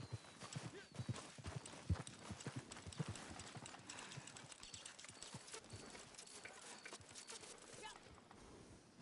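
Footsteps crunch softly through grass and dirt.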